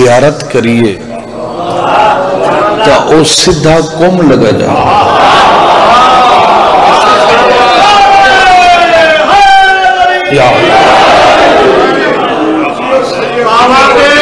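A man chants loudly and tunefully into a microphone, with an echo.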